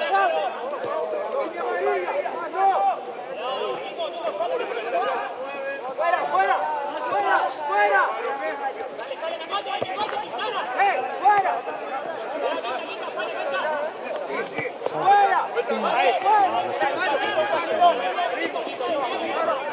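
Young men shout and call to each other across an open playing field.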